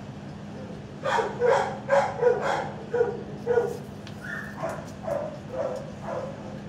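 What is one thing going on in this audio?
A dog whines in short bursts.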